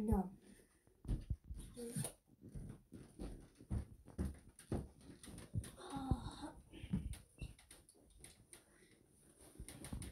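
Footsteps and knocks thump on a wooden bed frame.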